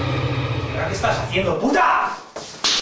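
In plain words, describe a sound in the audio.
A man shouts angrily nearby.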